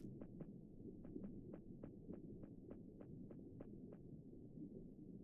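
Small footsteps patter quickly on soft ground.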